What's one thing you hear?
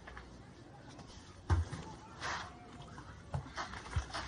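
A pillow thumps against a person.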